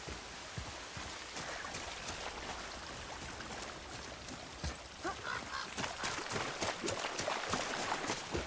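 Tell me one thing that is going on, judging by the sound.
A stream of water babbles and flows.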